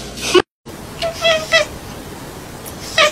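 A cat meows in short cries.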